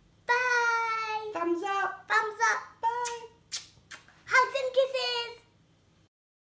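A young girl shouts and squeals excitedly close by.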